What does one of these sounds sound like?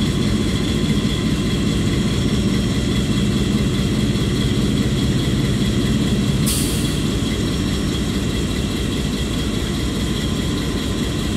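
A diesel locomotive engine idles with a deep, steady rumble.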